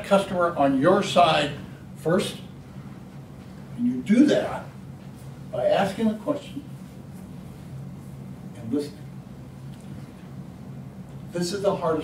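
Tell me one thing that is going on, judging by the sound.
An elderly man speaks calmly to an audience, in short phrases with pauses.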